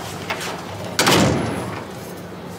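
A door bangs shut.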